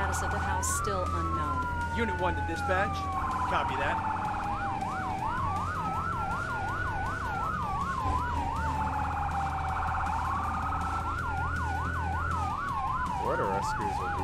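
A siren wails steadily, switching between a slow rise and fall and a fast yelp.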